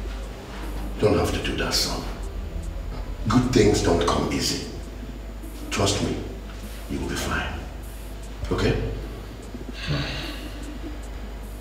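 An elderly man speaks calmly and gently, close by.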